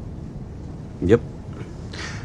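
A middle-aged man speaks briefly and calmly.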